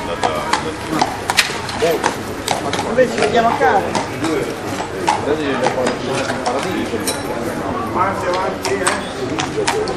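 A horse's hooves clop on cobblestones.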